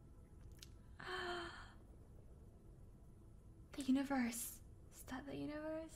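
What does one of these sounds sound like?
A young woman speaks softly into a close microphone, in short bursts.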